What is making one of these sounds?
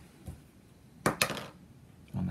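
A small game piece clicks down onto a board.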